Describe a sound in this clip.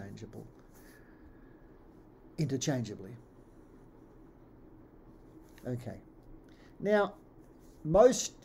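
An older man speaks calmly in short phrases over an online call.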